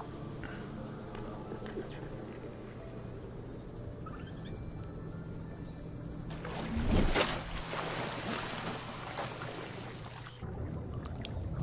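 A small submarine motor hums steadily underwater.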